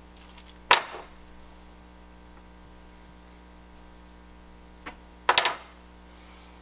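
A board knocks down sharply on a hard surface.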